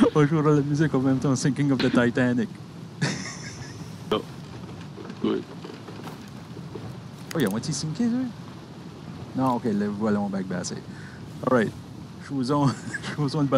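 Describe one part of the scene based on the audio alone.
Ocean waves wash and lap against a wooden ship.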